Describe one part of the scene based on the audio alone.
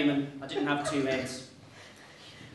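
A man speaks clearly.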